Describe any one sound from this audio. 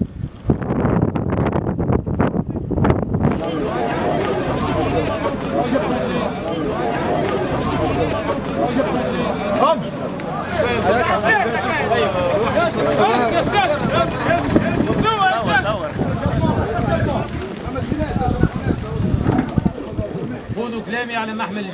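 A large crowd of men talks and shouts outdoors.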